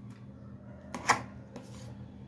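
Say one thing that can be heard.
A metal spoon clinks against a metal pot.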